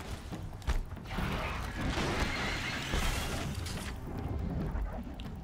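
A large mechanical creature whirs and clanks nearby.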